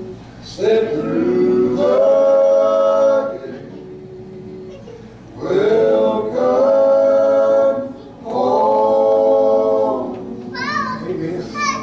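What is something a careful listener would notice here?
An acoustic guitar strums along.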